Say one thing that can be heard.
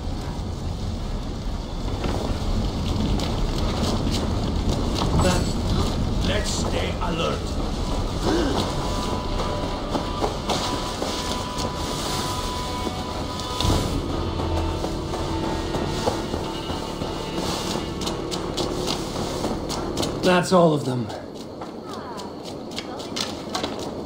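Footsteps crunch through grass and dirt.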